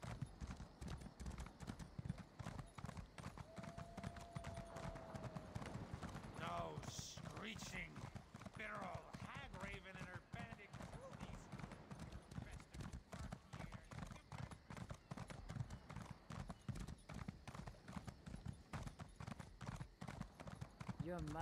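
A horse's hooves gallop steadily on the ground.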